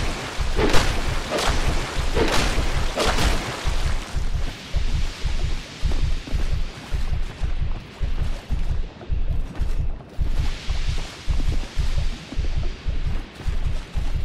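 Heavy armoured footsteps thud in a steady rhythm.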